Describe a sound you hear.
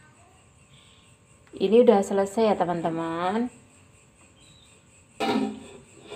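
A glass lid clinks as it is lifted off a pot.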